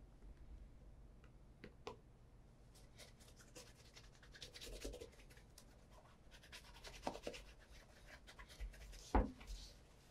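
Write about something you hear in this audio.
A cloth rubs briskly over a leather shoe.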